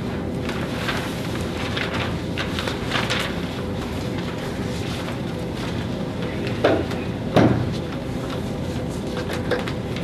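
Paper rustles as a man handles sheets.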